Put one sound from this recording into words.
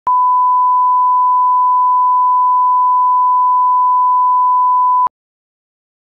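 A steady high test tone sounds, then stops abruptly.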